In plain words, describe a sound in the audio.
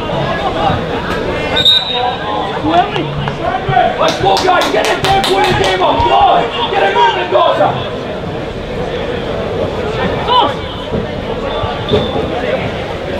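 Players shout to one another outdoors across an open pitch.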